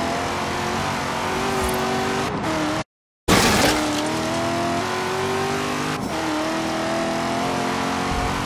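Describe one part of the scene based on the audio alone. A car engine roars at high speed, its pitch rising and dropping as gears shift.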